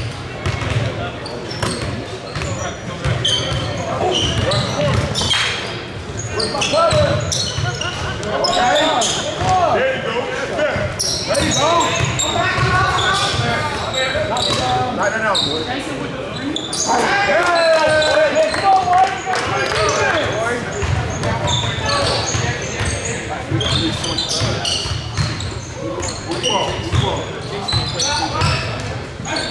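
Sneakers squeak sharply on a hard court, echoing in a large hall.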